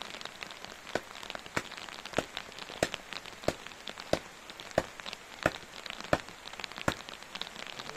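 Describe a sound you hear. A post thuds repeatedly as it is pounded into the ground.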